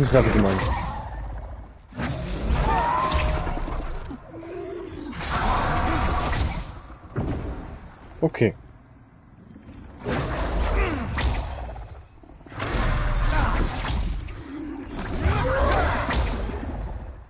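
Magic spells whoosh and crackle as they are cast.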